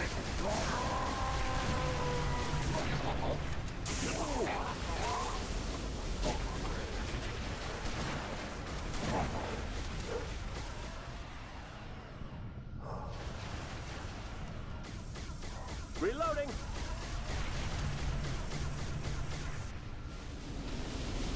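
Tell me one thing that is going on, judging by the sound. Plasma weapons fire in rapid bursts.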